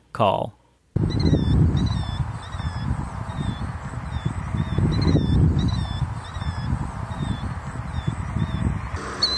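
A killdeer calls with repeated high, thin notes.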